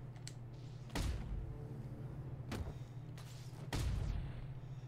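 Heavy punches thud during a fight.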